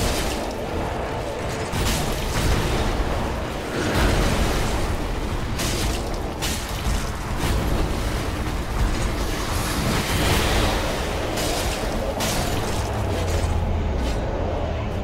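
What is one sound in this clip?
A huge creature roars and thrashes.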